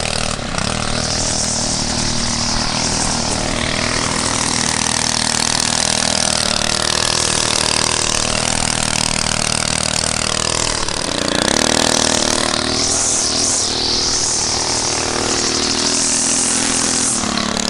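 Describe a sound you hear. A petrol string trimmer engine drones close by, its pitch rising and falling.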